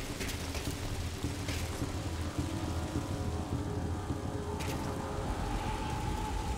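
Soft footsteps shuffle slowly across a hard floor.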